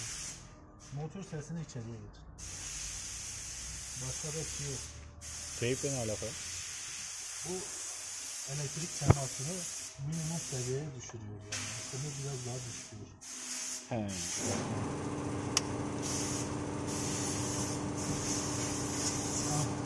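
Metal parts clink as a hand works at an engine's hoses.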